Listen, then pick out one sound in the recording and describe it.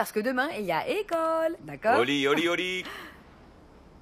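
A young woman speaks playfully, close by.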